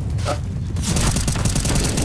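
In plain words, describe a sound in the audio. Rapid gunfire bursts close by.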